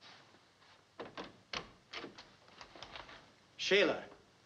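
Footsteps knock.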